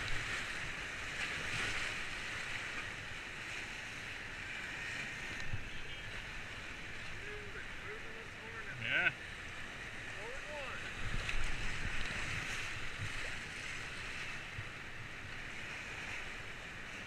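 Whitewater rapids rush and roar loudly close by.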